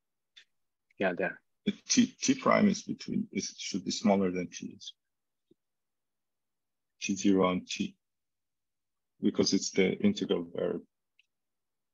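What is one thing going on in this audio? A man speaks calmly through an online call, in short bursts with pauses.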